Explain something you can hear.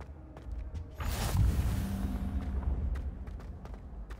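A soft magical whoosh swells and fades.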